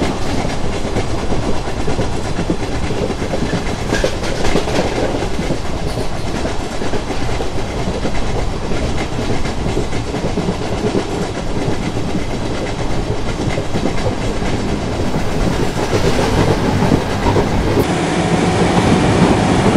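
Wheels clatter rhythmically over rail joints.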